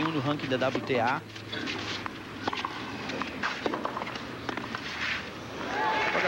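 A tennis ball is struck back and forth with sharp pops of rackets.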